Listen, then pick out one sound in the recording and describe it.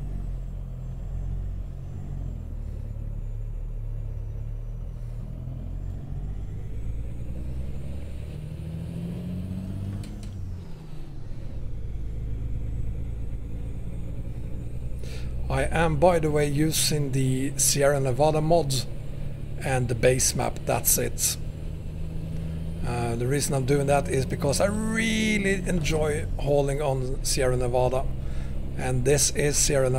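A truck engine rumbles low and steady.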